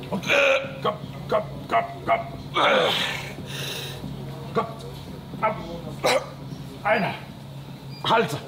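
An older man urges on loudly and with animation, close by.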